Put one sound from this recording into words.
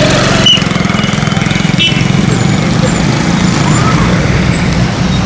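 A small motorbike engine idles with a steady rattling putter, close by.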